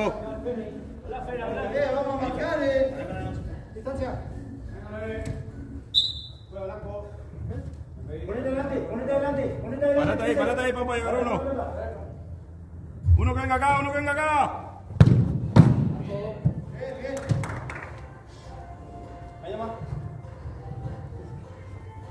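Men shout and call out to each other in an echoing hall.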